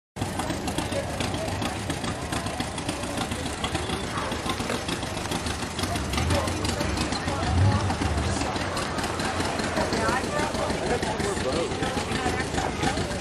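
A pickup truck engine rumbles as it rolls slowly past.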